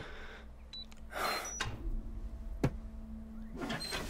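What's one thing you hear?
A safe's dial clicks as it turns.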